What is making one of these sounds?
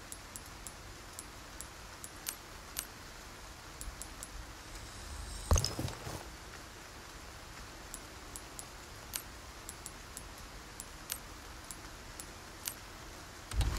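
Soft menu clicks tick as items are selected.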